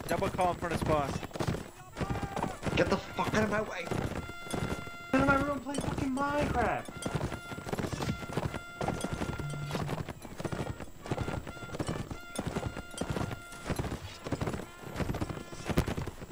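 Horse hooves thud rapidly on snow at a gallop.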